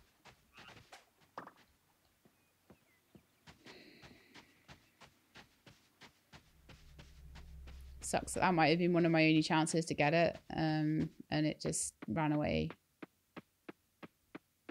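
Footsteps patter quickly over grass and dirt.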